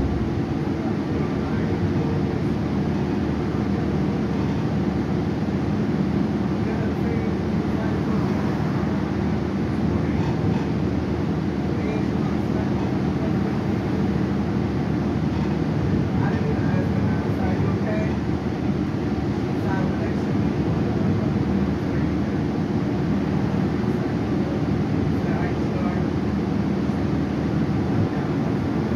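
A bus engine hums low and steady as the bus drives along.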